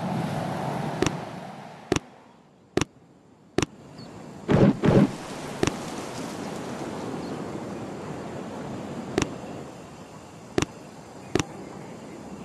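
Game menu buttons click sharply, one at a time.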